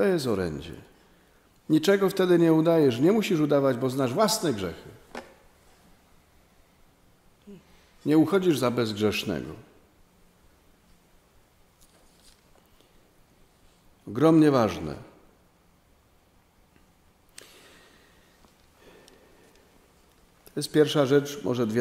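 A middle-aged man speaks calmly into a microphone in phrases, with pauses between them.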